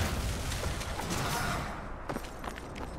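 Water splashes under heavy footsteps.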